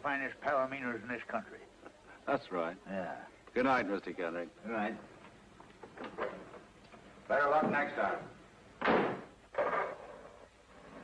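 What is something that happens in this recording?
A middle-aged man speaks calmly and politely close by.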